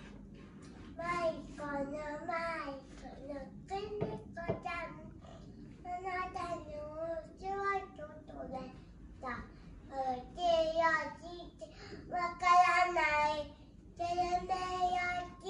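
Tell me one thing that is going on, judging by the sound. A little girl chatters and squeals excitedly close by.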